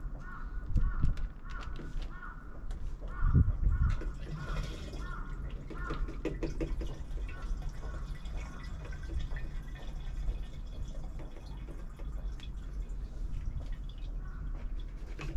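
A plastic fuel can knocks and clatters as it is handled.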